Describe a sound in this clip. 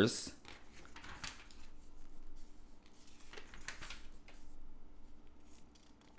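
Glossy catalogue pages rustle and turn.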